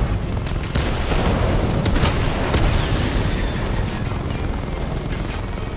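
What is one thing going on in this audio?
Guns fire rapidly.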